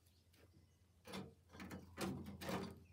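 Something scrapes and rustles against a metal wheelbarrow.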